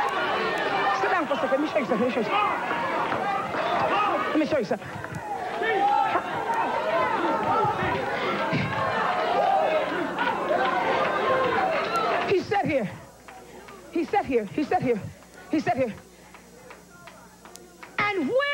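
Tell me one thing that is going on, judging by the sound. A woman speaks fervently into a microphone.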